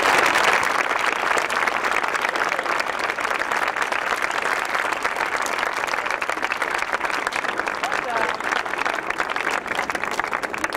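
A crowd applauds steadily outdoors.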